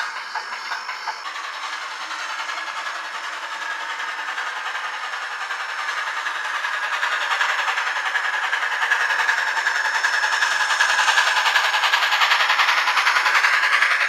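A model train clatters along its track, growing louder as it draws near.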